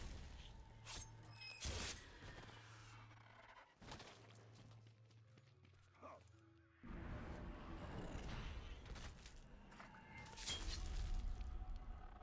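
Swords slash and strike in a fight.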